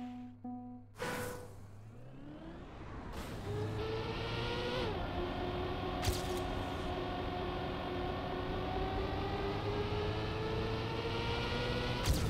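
A racing car engine revs up and whines at high speed.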